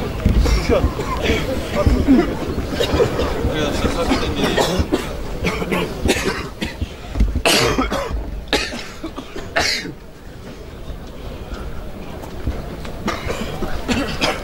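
A crowd of young men chants loudly in unison outdoors.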